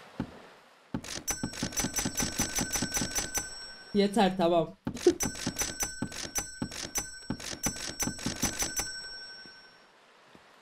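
Money clinks in fast repeated bursts.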